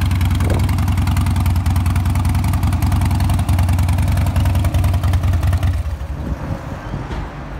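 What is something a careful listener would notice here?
A motorcycle engine idles close by with a loud, lumpy, throbbing rumble.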